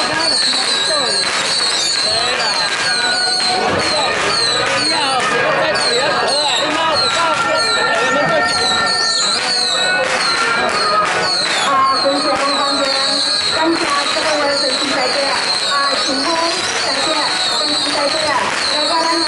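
A large crowd chatters loudly outdoors.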